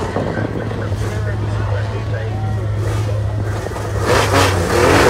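A rally car engine idles with a steady rumble.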